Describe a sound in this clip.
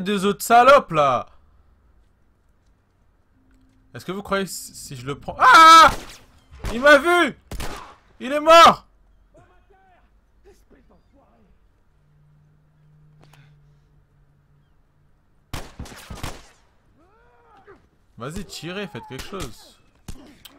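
A young man talks with animation into a headset microphone, in bursts.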